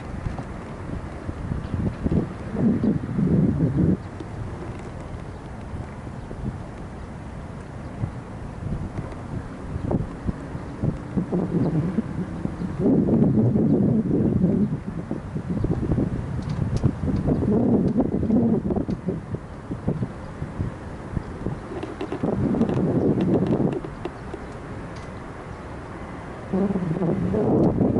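Wind gusts and rumbles outdoors on open water.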